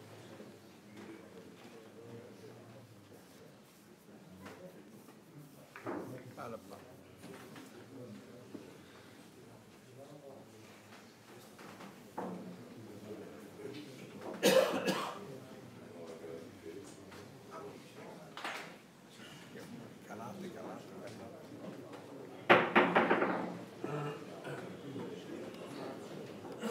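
Billiard balls click together.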